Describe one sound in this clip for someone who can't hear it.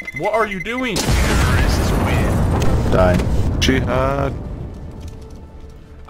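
A bomb explodes with a loud, rumbling blast that slowly fades.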